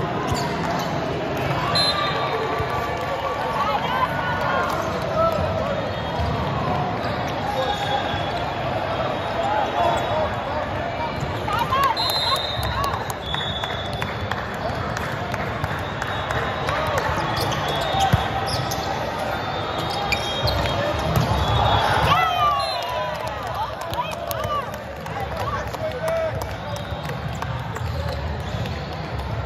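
A crowd of players and spectators chatters and calls out in a large echoing hall.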